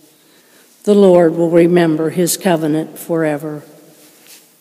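An elderly woman speaks into a microphone, heard in a large echoing hall.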